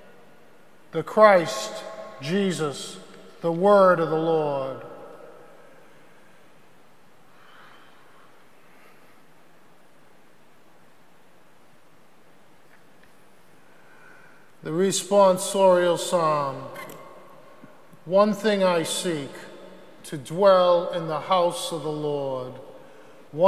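A middle-aged man speaks calmly through a microphone in an echoing hall, pausing between phrases.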